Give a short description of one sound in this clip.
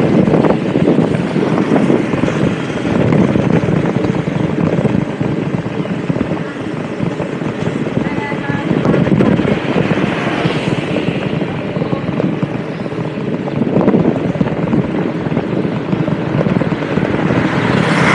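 A motorbike engine hums steadily while riding along a road.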